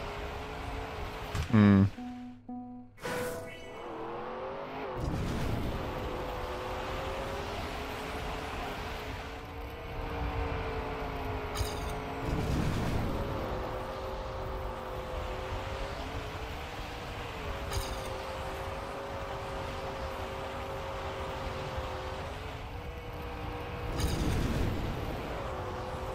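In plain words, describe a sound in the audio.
A car engine hums steadily at high revs, shifting pitch slightly.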